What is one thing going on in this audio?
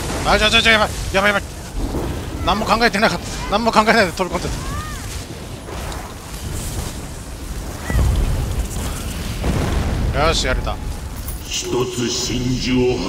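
Magic spells crackle and boom in a fight.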